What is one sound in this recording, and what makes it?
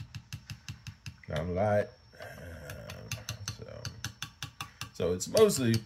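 A spoon clinks rapidly against a glass as it stirs.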